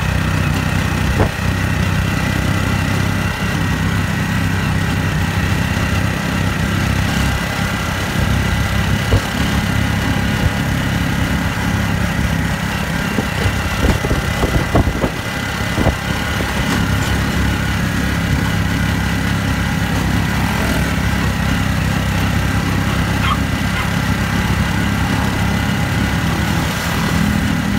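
A small motor engine drones steadily close by.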